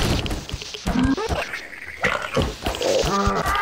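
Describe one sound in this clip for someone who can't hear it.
A metal bar strikes flesh with heavy thuds.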